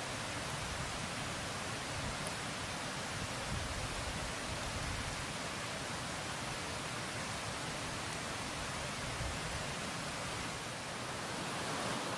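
A wood fire crackles and hisses.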